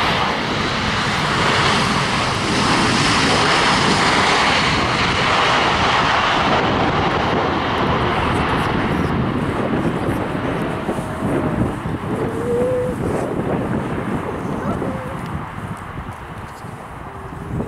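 A jet airliner's engines roar loudly as it speeds past, then slowly fade into the distance.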